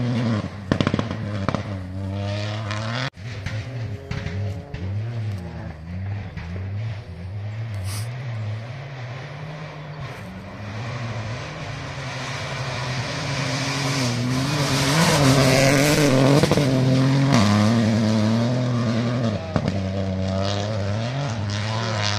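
A rally car engine roars and revs up and down.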